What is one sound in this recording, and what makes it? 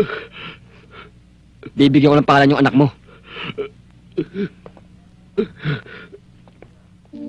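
A young man speaks sharply and loudly nearby.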